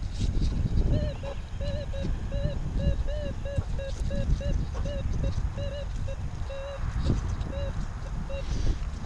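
A metal detector hums with a steady warbling tone.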